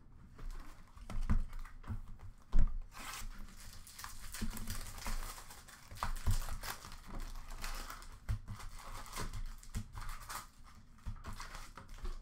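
Plastic card wrappers crinkle and rustle as packs are handled.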